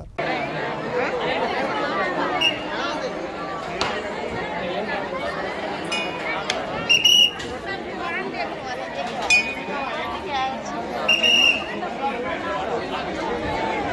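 A crowd of men talk loudly and excitedly all at once, close by and outdoors.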